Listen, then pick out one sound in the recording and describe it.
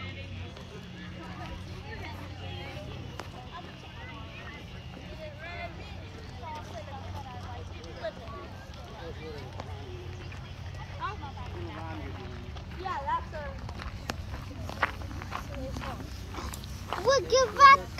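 Children shout and call out outdoors in the distance.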